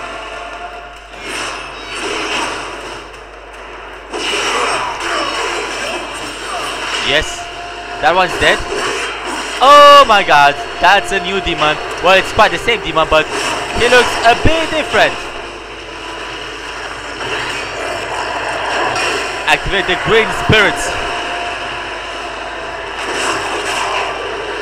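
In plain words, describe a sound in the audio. Blades clash and strike with sharp metallic hits.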